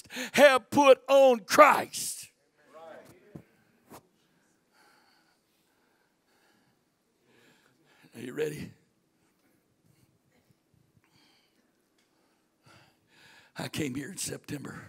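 A middle-aged man speaks with animation into a microphone, heard through loudspeakers in a large echoing hall.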